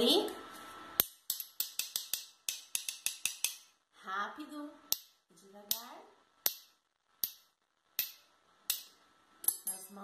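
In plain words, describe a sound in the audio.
Metal spoons tap together in a quick rhythm.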